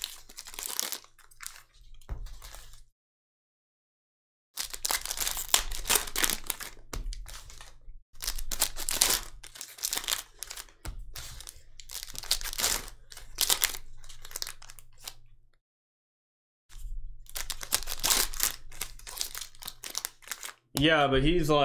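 Cards are slid and shuffled against one another.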